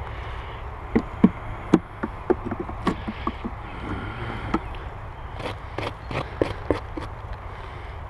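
Wooden hive boxes knock and bump as they are handled.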